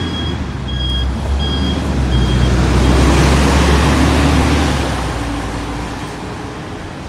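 A bus drives past close by, its engine rumbling and tyres hissing.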